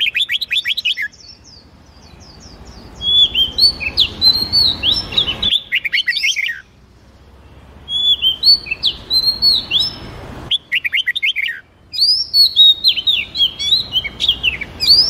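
Songbirds sing loud, quick whistled trills and chirps close by.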